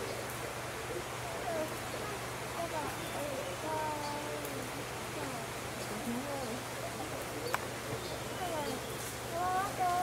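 A gorilla walks through dry leaves and branches with a soft rustle.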